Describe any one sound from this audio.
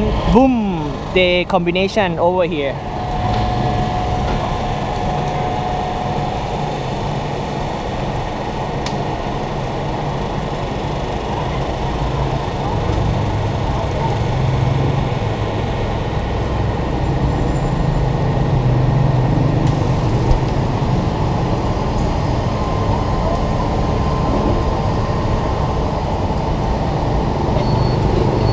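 An oven fan hums steadily.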